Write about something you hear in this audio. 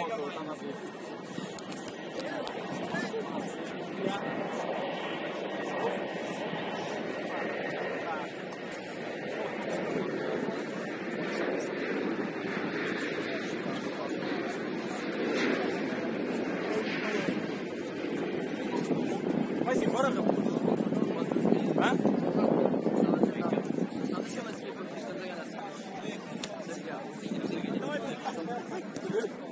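Young men talk and call out to each other nearby.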